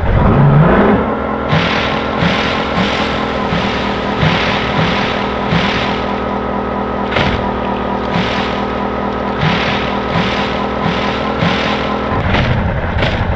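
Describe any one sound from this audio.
A small boat's motor hums steadily.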